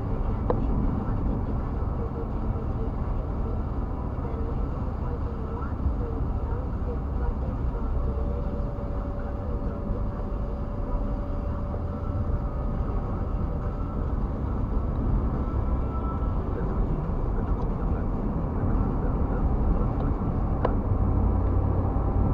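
Tyres roll on a road with a low rumble.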